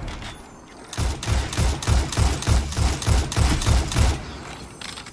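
A rifle fires in rapid, booming bursts.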